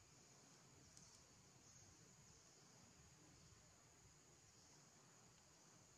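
Monkeys shuffle and scramble on stone.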